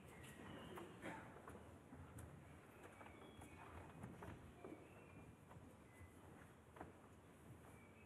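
Bare feet thud and patter quickly across a hard floor.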